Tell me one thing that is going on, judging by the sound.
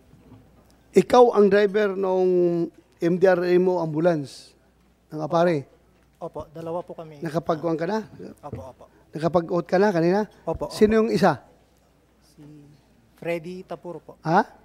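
A man speaks with animation into a microphone, loud and close.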